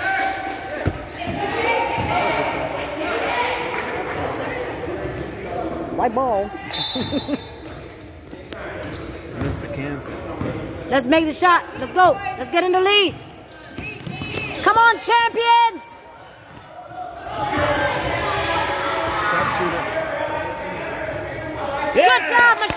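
A basketball bounces on a hardwood floor, echoing in a large hall.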